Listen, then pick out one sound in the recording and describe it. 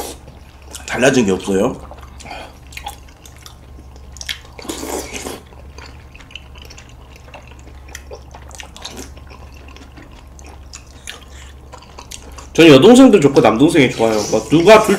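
A young man slurps noodles close to a microphone.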